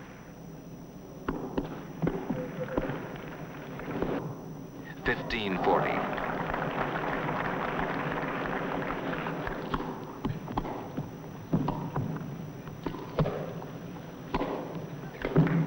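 Tennis balls are struck sharply with rackets.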